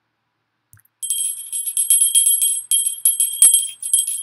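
A small hand bell rings rapidly.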